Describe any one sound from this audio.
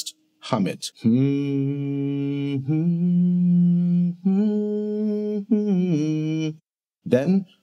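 A man hums long, steady notes close by.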